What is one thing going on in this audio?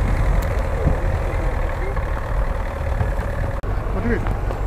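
A heavy truck engine rumbles and labours in the distance.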